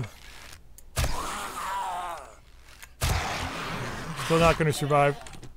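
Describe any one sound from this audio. A bow twangs as an arrow is shot.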